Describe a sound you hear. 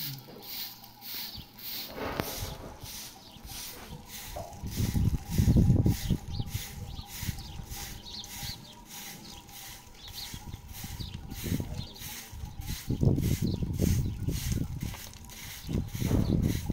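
A short straw hand broom sweeps over dusty, gravelly ground in short rhythmic strokes.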